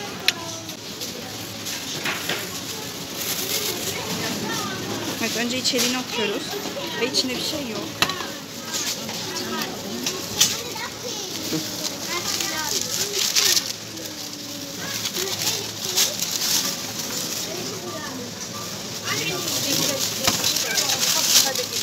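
A thin plastic bag rustles and crinkles close by.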